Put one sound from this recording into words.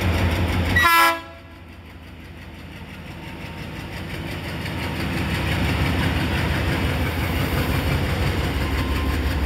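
A diesel locomotive engine rumbles steadily nearby, slowly growing louder.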